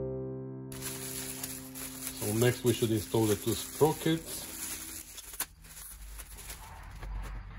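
Plastic wrapping crinkles and rustles as hands unwrap it.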